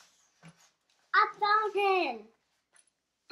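A little boy speaks briefly and closely.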